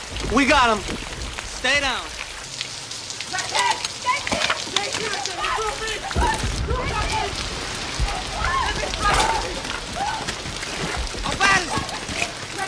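A man shouts urgently close by.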